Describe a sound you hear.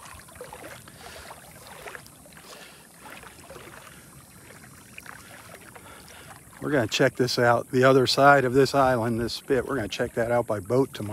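Small waves lap gently on open water.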